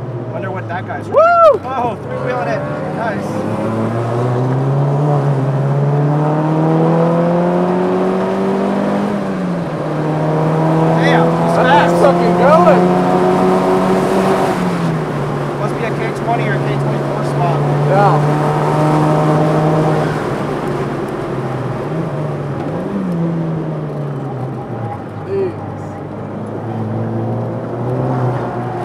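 A car engine roars steadily, rising and dropping in pitch as gears change.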